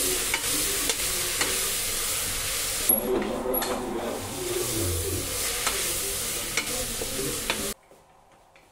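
A wooden spoon stirs and scrapes inside a metal pot.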